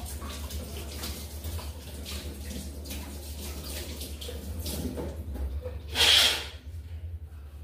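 Water splashes in a sink.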